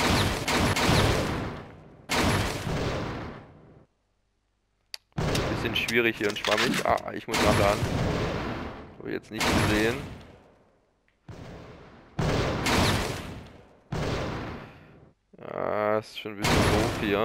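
Pistol shots ring out with echoing decay.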